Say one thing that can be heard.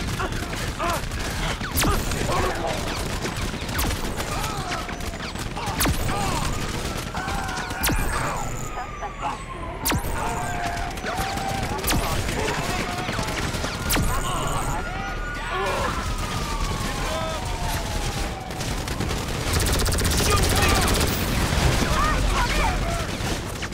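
Pistol shots ring out one at a time, echoing outdoors.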